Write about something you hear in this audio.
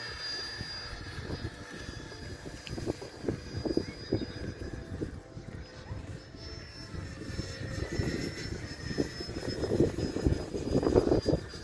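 A jet plane roars overhead with a high whine.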